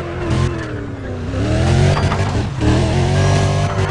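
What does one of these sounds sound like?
Tyres screech as a car drifts through a turn.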